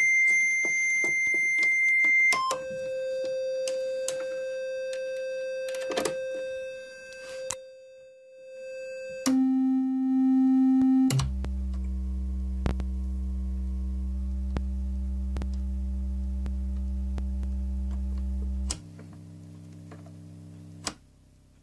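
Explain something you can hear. A synthesizer plays steady electronic tones that jump from one pitch to another.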